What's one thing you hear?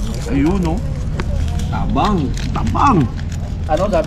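Paper crinkles as a packet is torn open.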